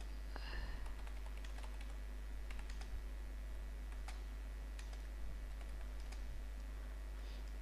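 Keys click softly on a keyboard as someone types.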